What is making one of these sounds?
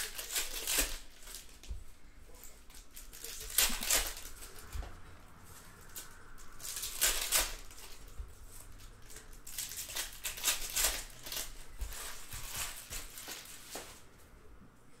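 A foil wrapper crinkles and tears loudly.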